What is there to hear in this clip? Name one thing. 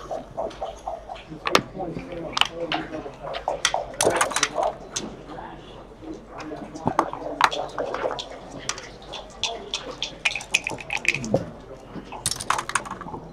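Plastic checkers click and clack as they are moved on a board.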